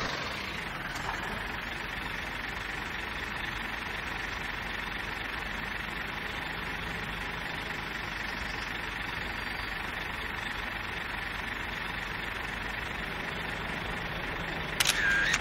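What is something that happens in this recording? A bus engine idles steadily with a low hum.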